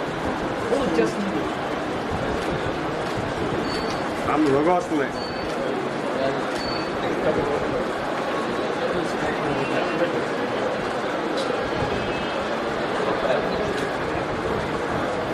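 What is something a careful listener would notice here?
A crowd of men and women murmur and talk close by.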